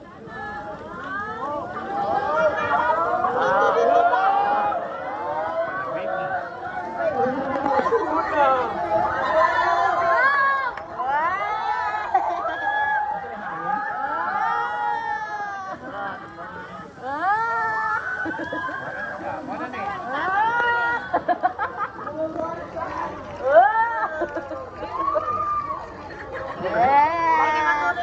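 A crowd of children and adults chatters and shouts nearby, outdoors.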